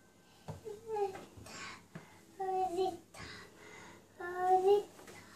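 A toddler babbles and squeals in a high voice close by.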